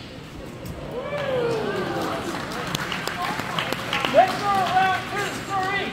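A crowd cheers and calls out in an echoing hall.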